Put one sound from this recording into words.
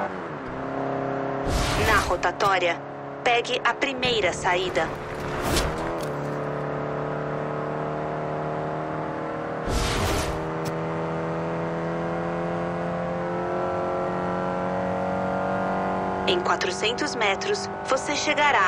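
A car engine revs steadily higher as the car speeds up.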